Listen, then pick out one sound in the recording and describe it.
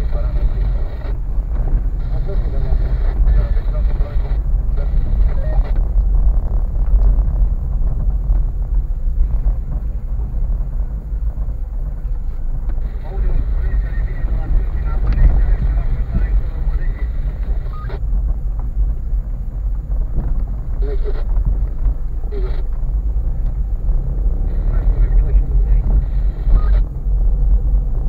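A car engine rumbles low and steady inside the cabin.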